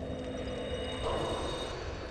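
A fire flares up and crackles.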